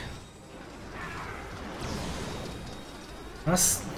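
Energy blasts crackle and zap in quick bursts.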